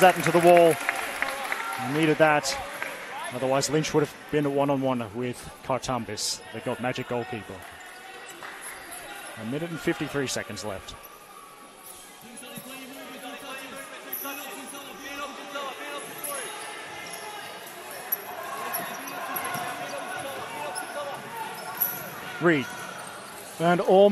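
Young players shout loudly across an echoing hall.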